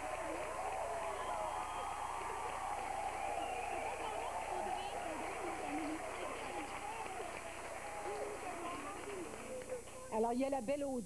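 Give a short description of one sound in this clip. Several women talk and cry out excitedly at once, close by.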